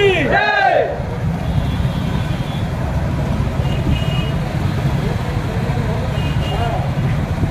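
Men in a crowd shout and chant outdoors.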